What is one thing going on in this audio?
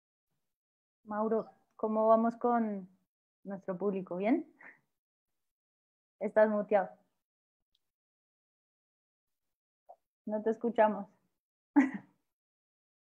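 A woman speaks with animation through an online call, pausing between phrases.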